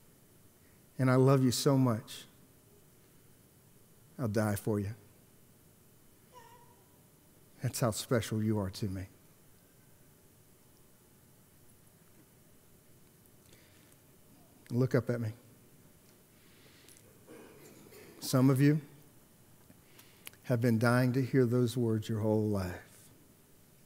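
A man speaks through a microphone in short bursts with long pauses.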